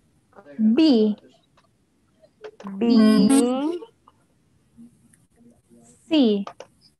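A young woman speaks slowly and clearly through a microphone, drawing out single words.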